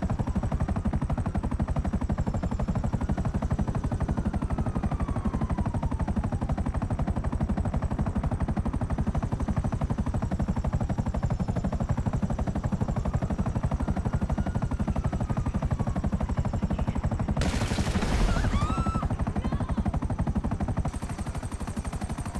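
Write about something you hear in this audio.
A helicopter's rotor thumps steadily and loudly.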